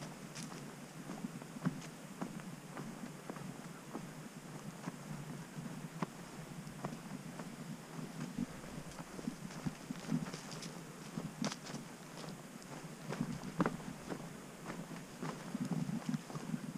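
Footsteps crunch on a dirt trail with twigs and leaves.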